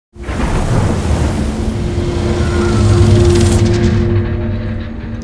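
Heavy waves crash and roar in a storm at sea.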